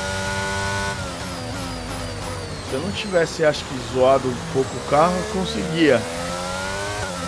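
A racing car engine roars at high revs, then drops in pitch with sharp blips as gears shift down.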